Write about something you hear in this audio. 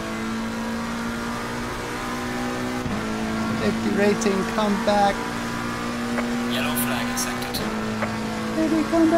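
A racing car engine roars at high revs and shifts up through the gears.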